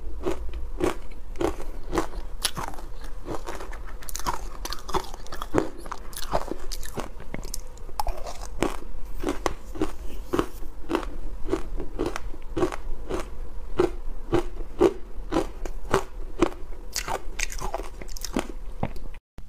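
A young woman chews crunchy ice loudly and wetly close to a microphone.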